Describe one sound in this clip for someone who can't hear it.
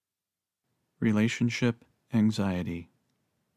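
A middle-aged man speaks calmly and slowly, close by.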